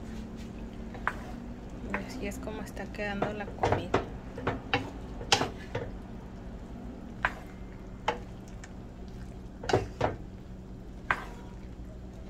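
A wooden spoon scrapes and knocks against a frying pan.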